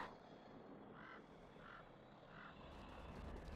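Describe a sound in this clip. Fighting creatures in a game trade quick, repeated blows.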